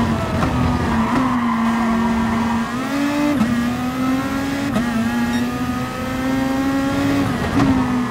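Other racing cars' engines whine close by.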